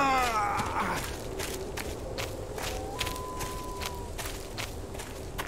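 Footsteps pad steadily through grass.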